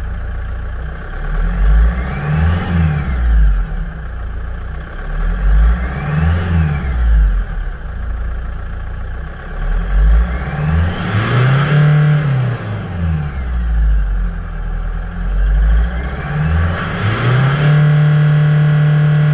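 A vehicle engine revs up sharply and falls back, several times.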